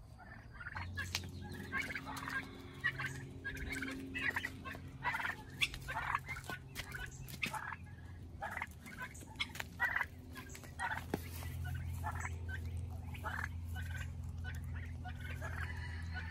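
Turkeys cluck and yelp in short, repeated calls close by.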